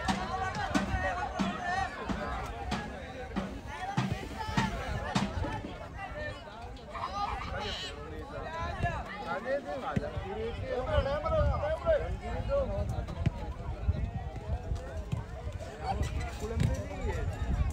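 Men shout and call out to each other across an outdoor pitch.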